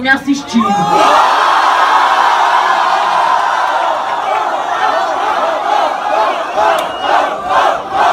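A young man raps loudly over a microphone.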